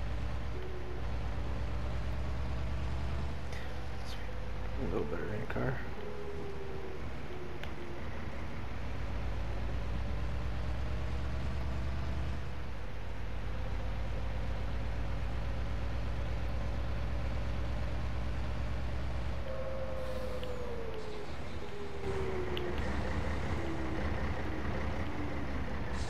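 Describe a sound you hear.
A truck engine hums steadily, rising and falling in pitch as it drives.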